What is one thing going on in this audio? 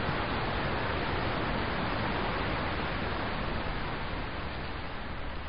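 Water rushes steadily over stones nearby.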